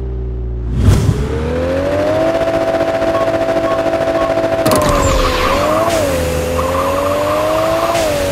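A car engine roars as the car launches and speeds up.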